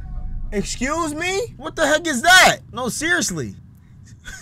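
A young man laughs loudly into a microphone.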